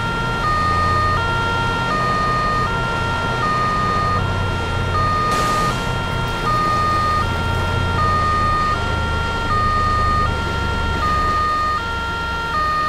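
A police siren wails in a steady two-tone pattern.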